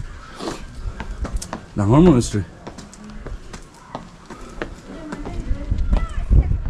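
Footsteps climb stone steps.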